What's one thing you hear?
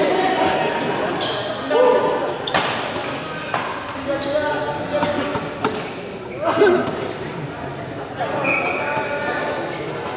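Men chatter and call out nearby.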